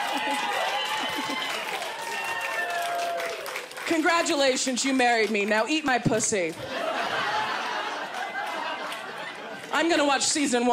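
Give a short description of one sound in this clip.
An audience laughs in a room.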